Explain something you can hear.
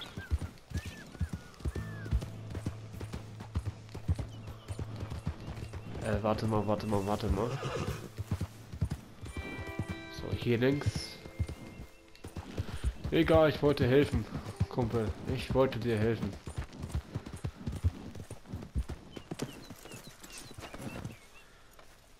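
A horse's hooves thud steadily at a gallop.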